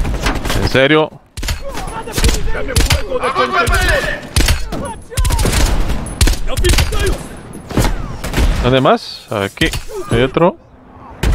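A rifle fires sharp, loud shots one after another.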